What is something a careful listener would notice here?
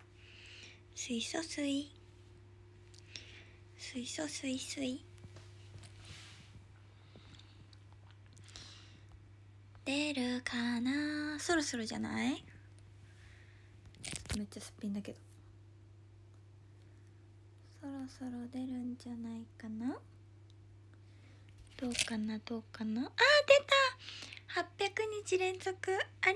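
A young woman speaks close to a phone microphone, casually and with pauses.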